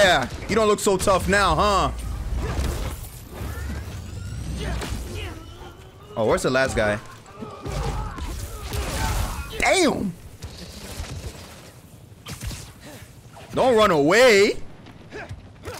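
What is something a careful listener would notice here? A young man talks and exclaims with animation into a microphone.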